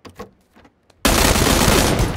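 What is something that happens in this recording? Rapid gunfire blasts loudly at close range.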